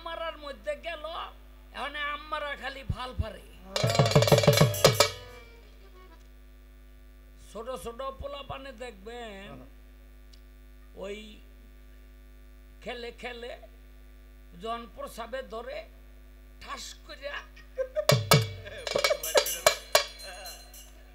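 A man sings loudly through a microphone in short phrases.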